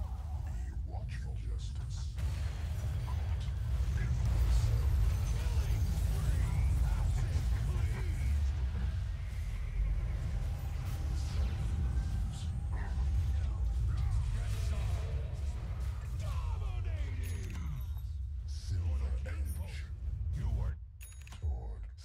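Game spells whoosh and crackle amid clashing combat effects.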